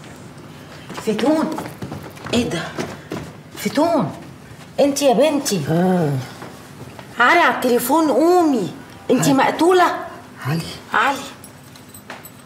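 A woman speaks urgently and tearfully, close by.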